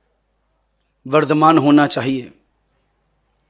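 An elderly man speaks calmly into a microphone, heard over a loudspeaker.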